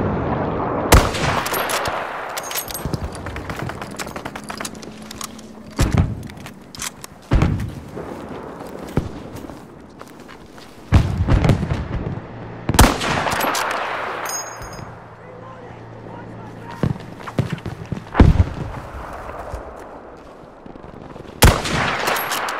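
A rifle fires loud, sharp shots, one every few seconds.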